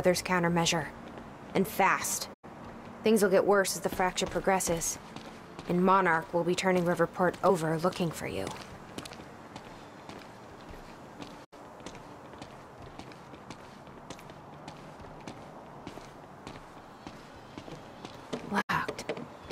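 Footsteps tread on stone steps and pavement.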